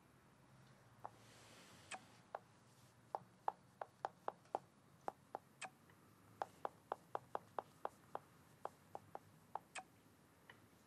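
Phone keys tap in quick light clicks.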